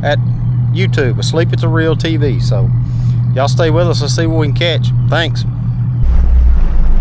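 A boat engine idles with a low steady hum.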